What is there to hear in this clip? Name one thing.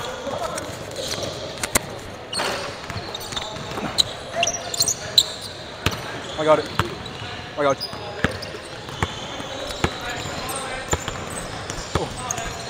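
A basketball bounces on a hard court with echoing thuds.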